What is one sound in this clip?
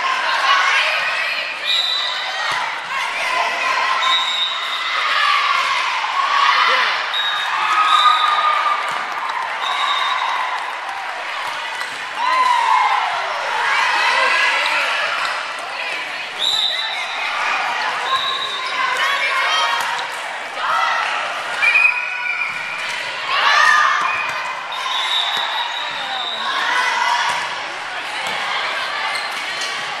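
A volleyball is bumped and set by hand.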